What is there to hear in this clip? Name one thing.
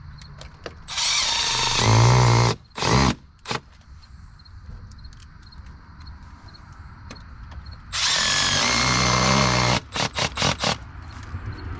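A cordless drill whirs in short, loud bursts.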